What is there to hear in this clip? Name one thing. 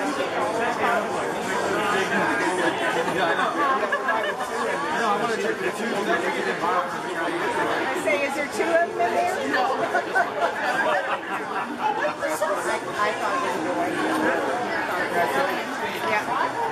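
A young woman laughs and talks nearby.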